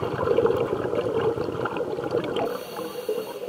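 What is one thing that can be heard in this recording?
Air bubbles from a diver's breathing gear rumble and gurgle loudly underwater.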